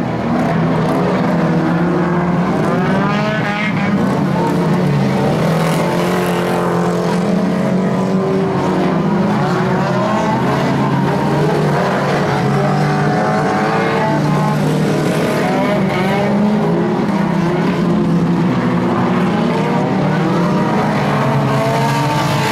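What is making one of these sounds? Car engines roar and rev.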